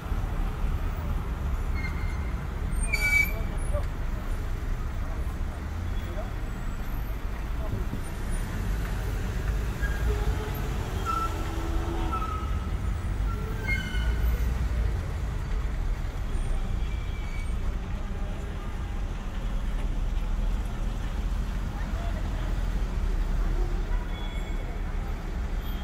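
A car drives along with a steady low rumble of engine and tyres on the road.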